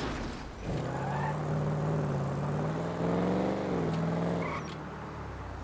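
A car engine revs and hums as the car drives off.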